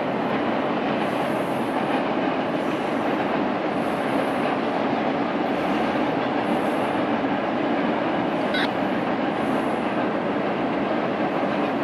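A long freight train rumbles steadily across a distant bridge.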